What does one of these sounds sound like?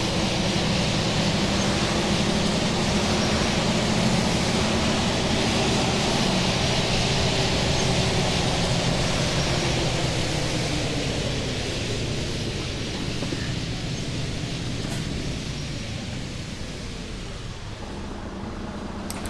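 Tyres roll on a wet road with a hiss.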